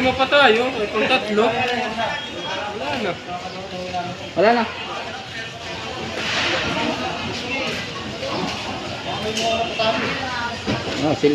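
A crowd of men talk and shout nearby outdoors.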